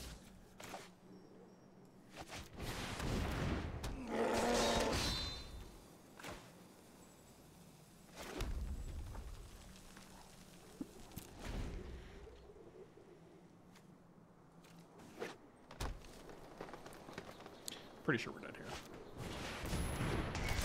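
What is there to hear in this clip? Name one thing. Game sound effects chime and whoosh as cards are played.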